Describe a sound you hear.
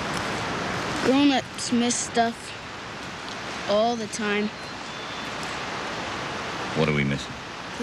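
A man speaks calmly in short phrases close by.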